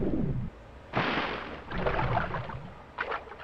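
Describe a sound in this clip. Water splashes as someone climbs out of it.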